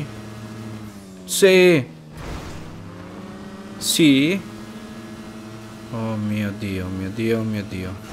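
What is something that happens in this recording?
A motorbike engine hums steadily.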